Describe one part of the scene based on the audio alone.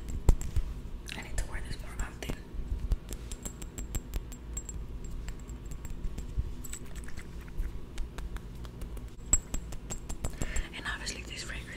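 A glass bottle clicks and taps in a young man's hands.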